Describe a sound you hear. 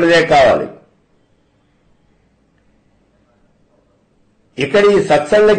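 An elderly man speaks calmly and clearly into a close microphone, pausing between phrases.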